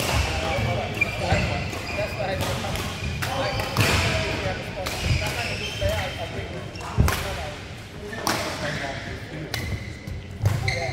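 Shuttlecocks are struck sharply by rackets in a large echoing hall.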